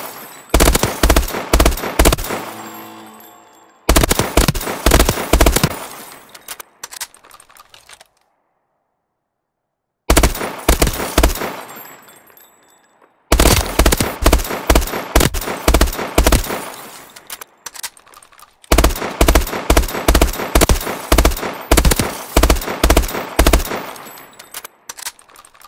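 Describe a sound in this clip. Rapid gunshots fire in bursts, ringing out in a large echoing hall.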